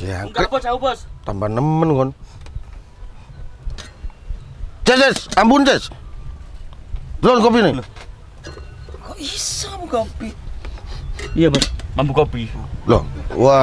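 Several men talk casually close by, outdoors.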